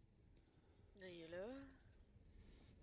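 A young woman gives a short drawn-out exclamation close to a microphone.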